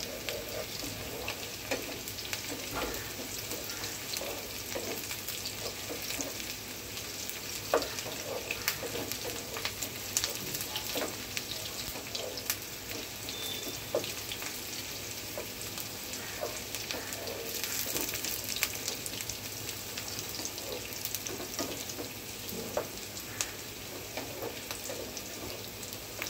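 Food sizzles steadily in hot oil in a pan.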